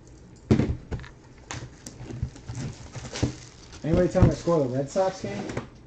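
Paper crinkles and rustles.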